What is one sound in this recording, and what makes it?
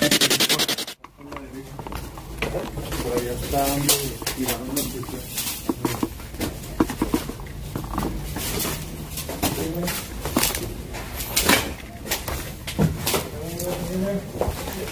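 Footsteps crunch over broken debris on the floor.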